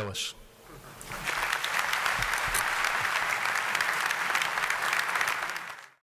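A crowd applauds loudly.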